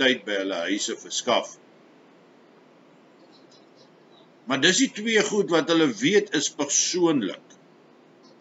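An older man speaks calmly and close to a microphone, with pauses.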